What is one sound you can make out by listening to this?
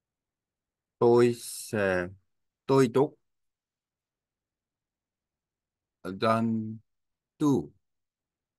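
A young man speaks calmly and clearly into a microphone, in short phrases with pauses.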